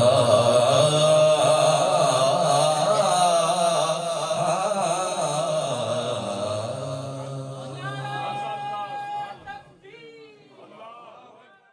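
A man sings into a microphone, and the singing slowly fades away.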